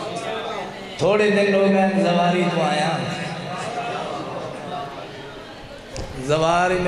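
A man recites loudly and with passion into a microphone, heard through loudspeakers with an echo.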